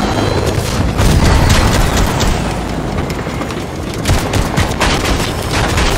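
A helicopter's rotor thumps loudly and steadily close by.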